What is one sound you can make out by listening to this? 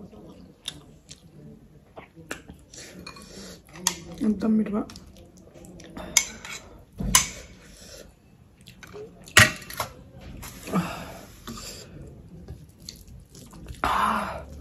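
A young woman eats noisily, chewing and smacking her lips close to a microphone.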